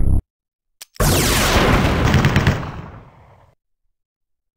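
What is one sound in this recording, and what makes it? A fiery magic blast roars and slowly fades.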